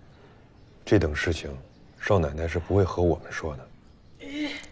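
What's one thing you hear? A younger man answers calmly.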